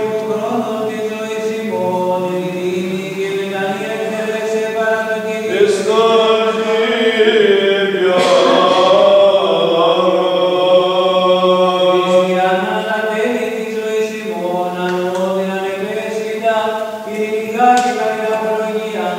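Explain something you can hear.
A man chants slowly in a deep voice, echoing in a large hall.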